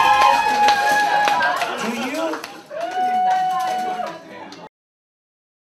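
A crowd of men and women cheers and shouts loudly in a room.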